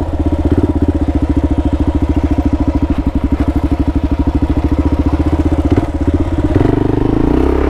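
A motorcycle engine thumps steadily at low revs.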